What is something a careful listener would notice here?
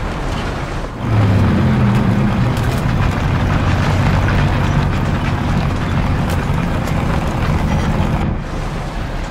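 A tank's diesel engine roars as the tank drives.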